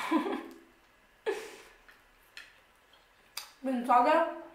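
Crisp food crunches as a young woman bites and chews.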